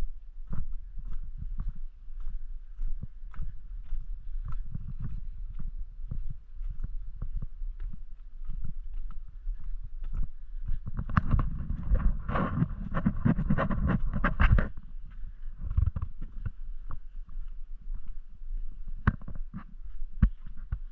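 Footsteps crunch steadily on a gravelly path.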